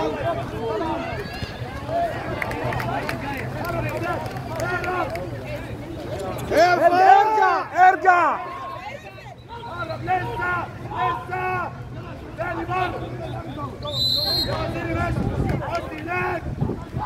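Water splashes as swimmers thrash about.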